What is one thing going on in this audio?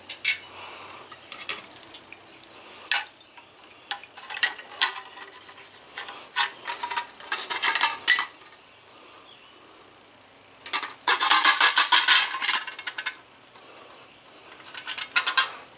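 A metal basket rattles and clinks against the rim of a can.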